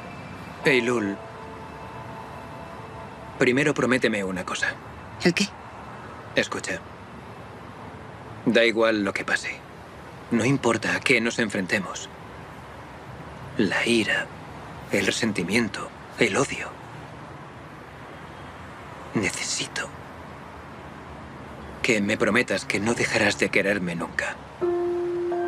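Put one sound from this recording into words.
A man speaks quietly and calmly nearby, in short phrases with pauses.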